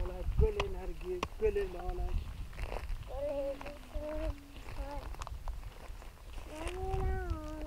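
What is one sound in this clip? Footsteps crunch on stony ground.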